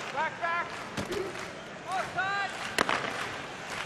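A hockey stick sharply smacks a puck.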